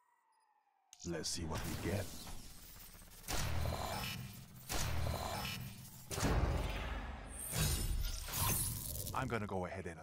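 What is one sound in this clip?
Deep booming whooshes burst out again and again in game sound effects.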